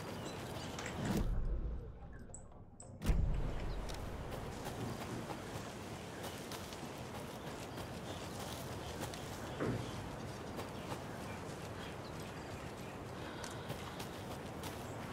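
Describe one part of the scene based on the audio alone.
Footsteps crunch softly over leaves and undergrowth.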